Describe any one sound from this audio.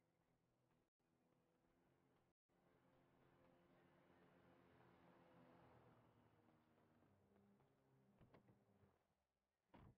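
A car engine hums and drives up close.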